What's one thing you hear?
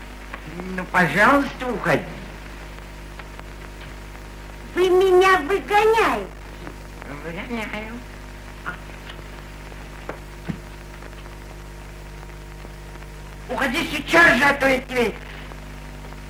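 An elderly man speaks gruffly nearby.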